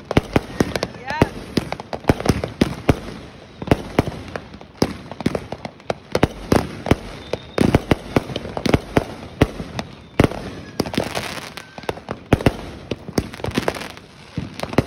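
Firework rockets whistle as they shoot up.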